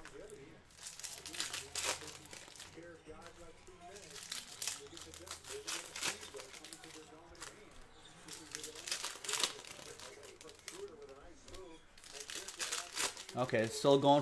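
Trading card packs crinkle and tear as they are opened.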